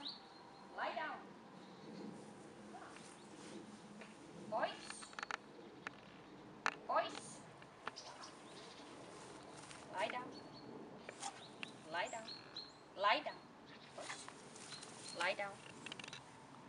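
A woman speaks to a dog nearby in short, upbeat bursts.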